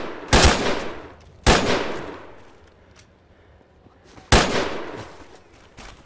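Loud gunshots boom and echo away.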